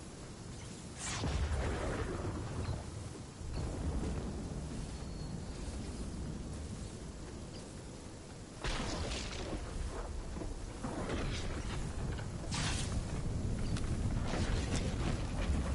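A young man talks into a microphone.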